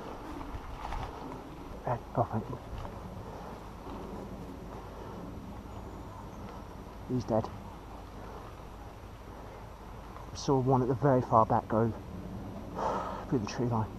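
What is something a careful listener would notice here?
Leaves and undergrowth rustle as someone pushes through the brush.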